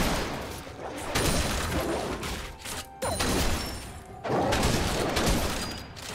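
Magic blasts crackle and whoosh in a fight.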